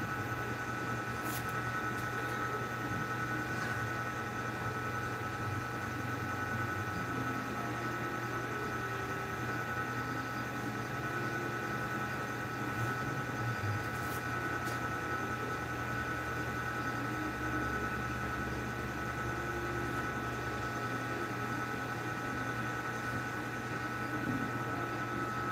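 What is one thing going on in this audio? Cloth rustles and flaps as shirts are shaken out and folded.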